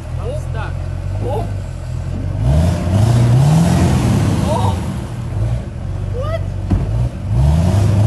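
A man exclaims nearby.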